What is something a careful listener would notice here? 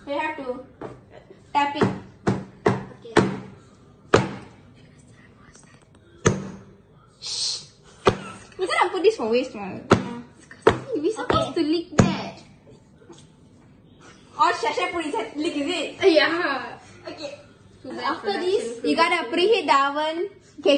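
Young girls talk and laugh close by.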